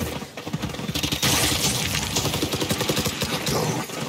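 A rifle fires a quick burst of shots.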